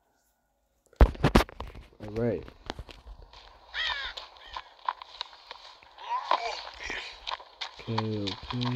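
Footsteps fall on grass and dirt.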